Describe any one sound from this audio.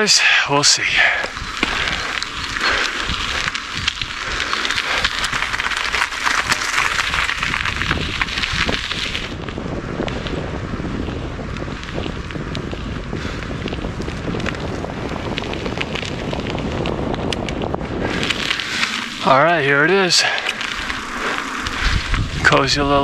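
Wind rushes and buffets against the microphone.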